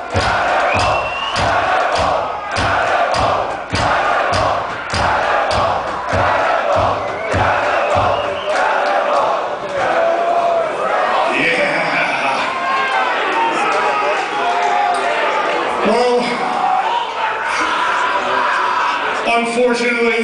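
A loud heavy metal band plays through big loudspeakers in a large hall.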